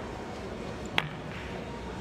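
Pool balls clack together once.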